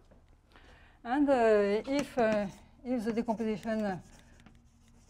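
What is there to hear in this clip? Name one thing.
A woman speaks calmly, as if lecturing.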